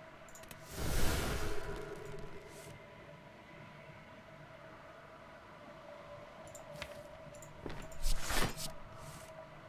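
Game sound effects whoosh and chime as cards are played.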